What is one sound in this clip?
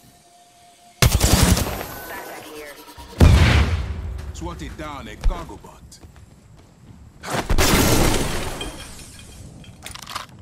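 Explosions boom loudly nearby and rumble away.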